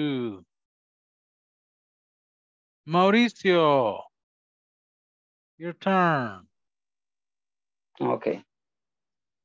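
A man speaks in short, lively phrases over an online call.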